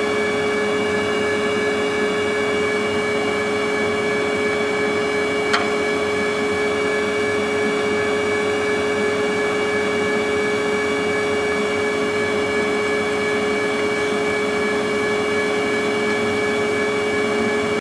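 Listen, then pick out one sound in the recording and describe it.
A ski lift's bullwheel and cable hum and whine steadily.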